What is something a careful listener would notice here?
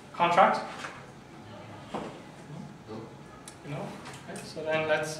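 A man speaks through a microphone, lecturing in a room with some echo.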